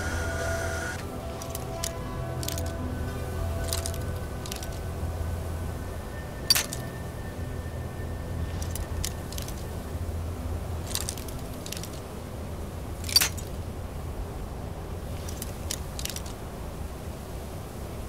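A metal lockpick scrapes and clicks inside a lock.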